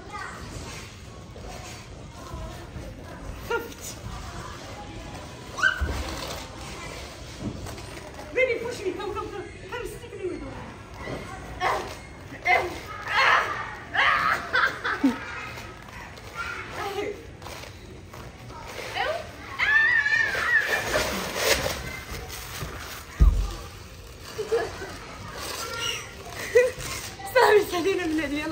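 A young woman talks and laughs with animation nearby.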